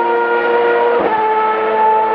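A race car engine shifts gear with a brief dip in pitch.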